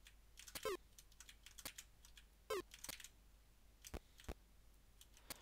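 Short retro video game sound effects chirp and beep now and then.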